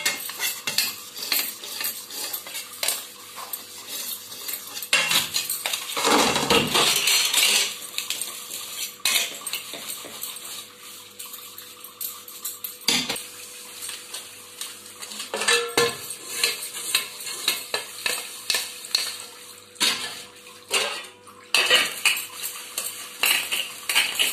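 Metal dishes clink and clatter against each other.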